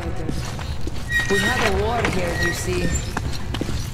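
A heavy metal wheel creaks as it turns.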